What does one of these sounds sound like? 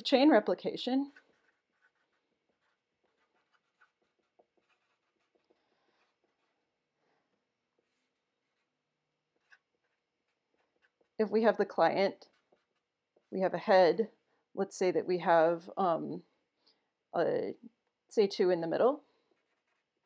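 A woman speaks calmly into a microphone, pausing between phrases.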